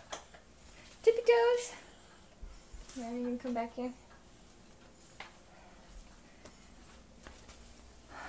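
A small child's footsteps patter on a hard floor.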